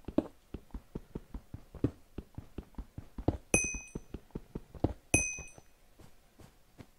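A pickaxe taps rapidly on stone blocks.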